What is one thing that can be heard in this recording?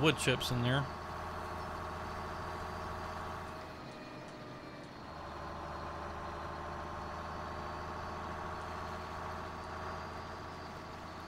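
A truck engine hums steadily as it drives along.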